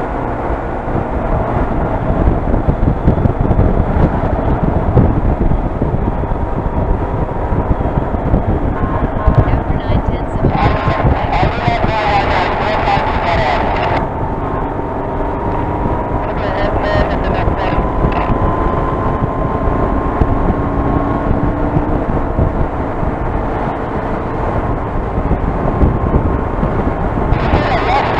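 A motorcycle engine hums steadily at highway speed.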